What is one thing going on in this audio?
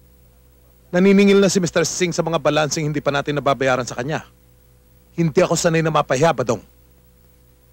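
A middle-aged man speaks forcefully up close.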